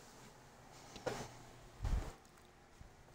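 A block thuds softly as it is placed.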